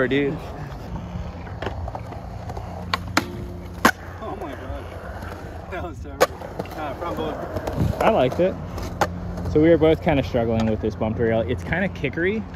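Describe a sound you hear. Skateboard wheels roll over smooth concrete.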